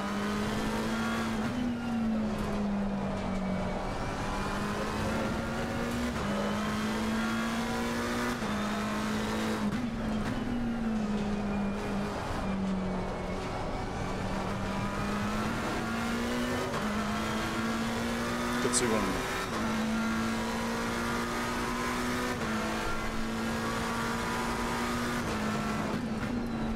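A racing car engine drones loudly, rising in pitch and dropping with each gear change.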